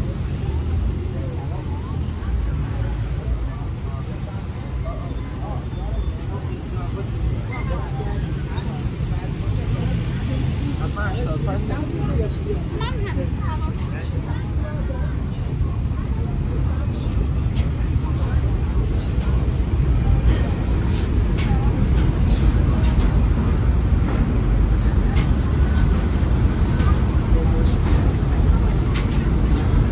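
Street traffic rumbles steadily nearby, outdoors.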